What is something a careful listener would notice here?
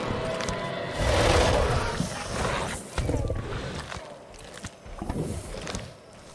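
A large beast growls and roars loudly.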